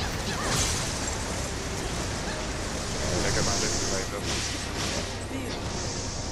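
Sword slashes whoosh and clash in quick bursts.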